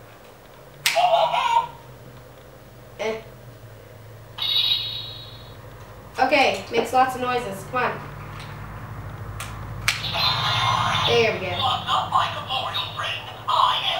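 Plastic parts click and rattle in a girl's hands.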